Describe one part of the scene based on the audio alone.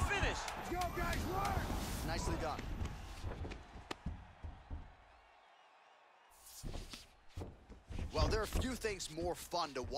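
Punches thud against a body in quick, heavy blows.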